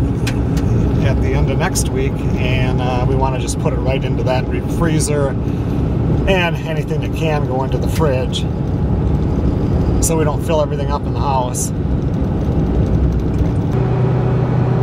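Tyres rumble and crunch over a gravel road.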